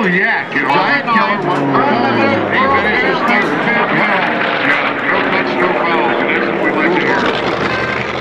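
A propeller plane roars past overhead, its engine dropping in pitch as it goes by.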